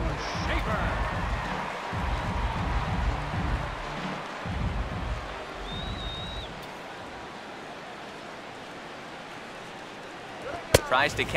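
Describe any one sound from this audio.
A stadium crowd murmurs and cheers in the background.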